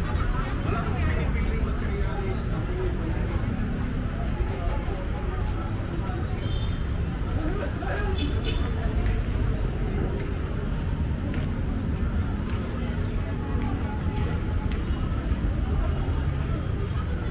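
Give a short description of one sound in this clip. Footsteps shuffle on pavement among a busy crowd.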